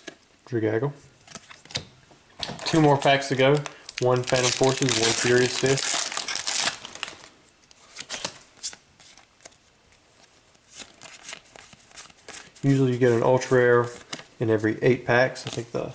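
Trading cards flick and slide against each other in hands.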